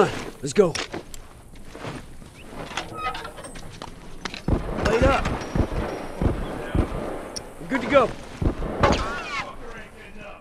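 Footsteps run quickly on hard ground.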